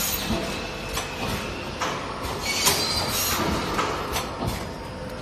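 A packaging machine clatters and clicks steadily.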